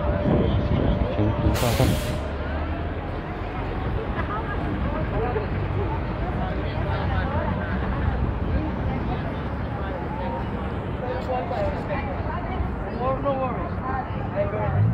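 Men and women chatter nearby and in the distance.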